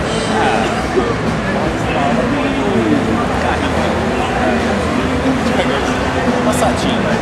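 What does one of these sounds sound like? Traffic hums steadily along a busy road.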